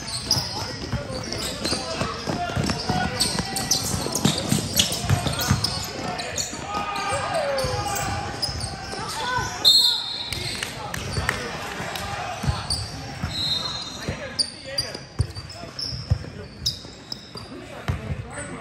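Sneakers squeak on a hard court floor as players run.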